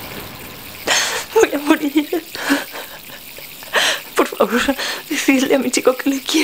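A woman sobs and speaks tearfully.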